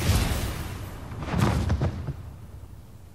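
A loud, heavy crash booms as a body slams down.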